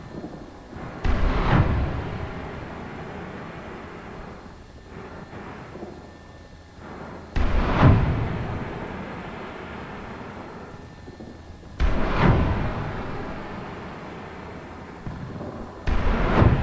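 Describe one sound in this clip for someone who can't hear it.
Heavy cannon shots boom one after another, each rolling away slowly.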